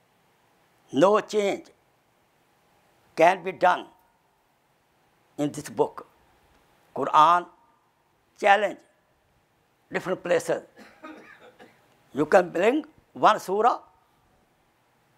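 An elderly man speaks slowly and earnestly into a close microphone, with long pauses.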